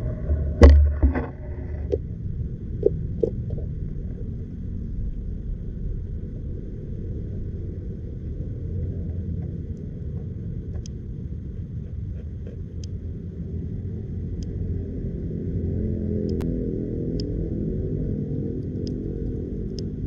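Water rumbles low and steady around an underwater microphone.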